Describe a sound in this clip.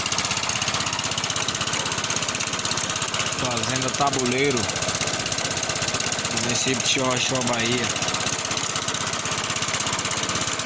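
A motorcycle engine runs at a steady, rapid idle.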